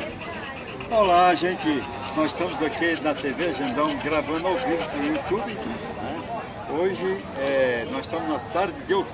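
An elderly man speaks with animation into a microphone, close by.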